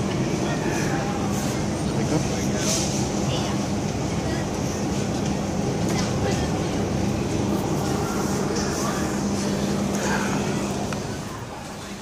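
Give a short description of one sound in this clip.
A refrigerated display case hums steadily nearby.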